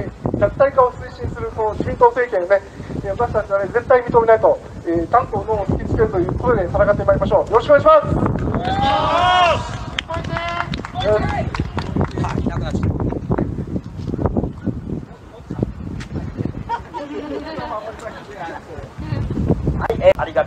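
A man speaks forcefully through a loudspeaker outdoors, his voice echoing.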